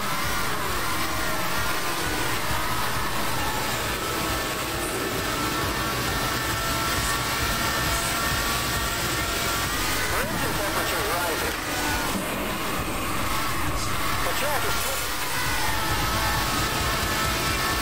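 A racing car engine roars at high revs throughout.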